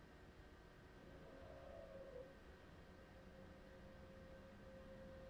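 An electric train motor hums as the train starts to move.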